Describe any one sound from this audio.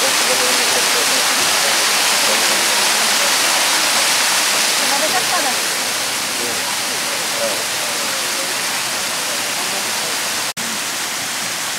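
A waterfall roars steadily, louder at first and then a little softer.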